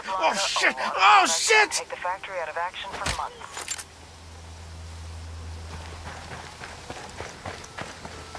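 Footsteps crunch on a dirt road.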